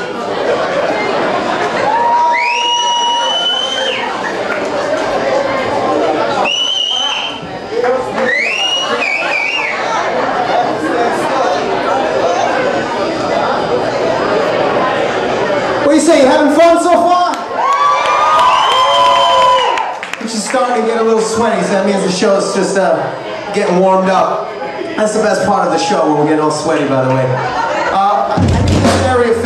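A loud electric guitar plays with heavy distortion, heard live in a room.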